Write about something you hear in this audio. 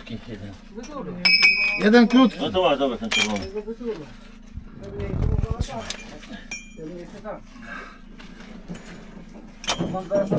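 Rocks and rubble knock and clatter as men dig.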